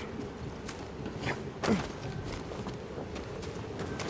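Hands scrape and grip stone while climbing.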